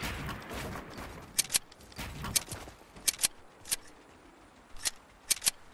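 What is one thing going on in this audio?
Building pieces snap into place with sharp, quick clicks.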